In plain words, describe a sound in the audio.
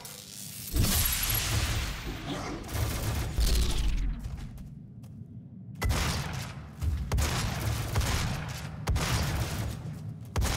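A heavy gun fires in loud booming blasts that echo.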